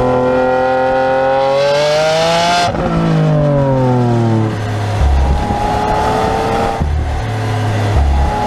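A sports car engine revs up loudly and roars, dropping in pitch with each gear shift.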